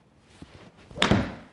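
A golf club strikes a ball with a sharp smack.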